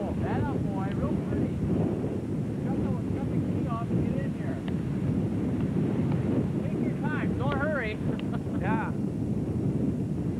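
Strong wind blows and rumbles outdoors.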